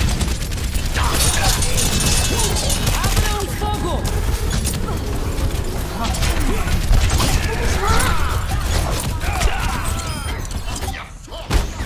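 Gunfire and energy blasts crackle rapidly.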